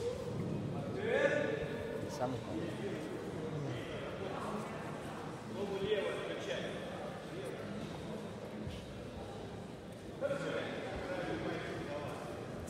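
A man calls out loudly in a large echoing hall.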